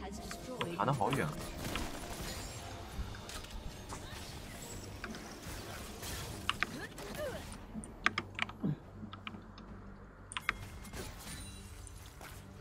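Sharp game sound effects of strikes and spells ring out.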